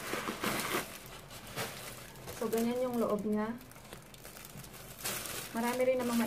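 A leather bag rustles and creaks as hands handle it.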